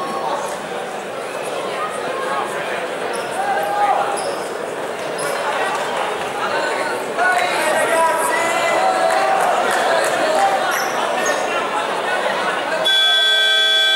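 Men talk with animation nearby in a large echoing hall.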